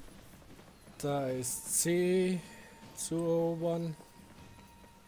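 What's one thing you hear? A man speaks loudly into a microphone, close by.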